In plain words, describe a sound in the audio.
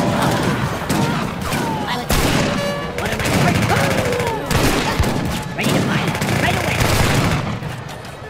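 Musket shots crackle in a noisy battle.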